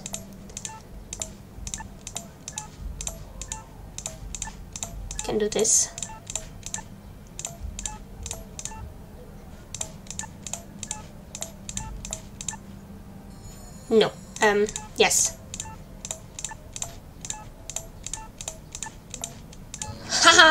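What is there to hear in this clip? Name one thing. Short, soft clicks sound again and again as puzzle pieces are moved.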